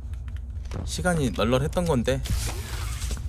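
A man speaks loudly and with animation into a close microphone.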